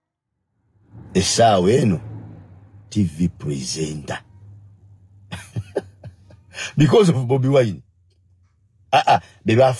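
A man speaks with animation, close up.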